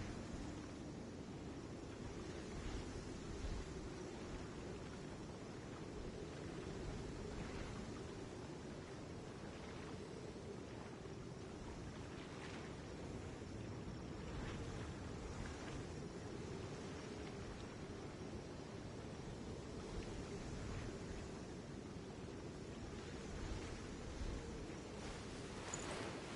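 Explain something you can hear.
A waterfall rushes steadily in the distance.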